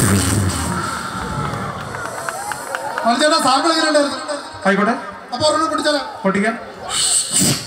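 Men sing loudly into microphones over an amplified sound system.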